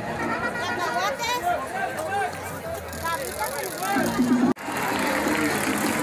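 A large crowd chatters and sings loudly all around.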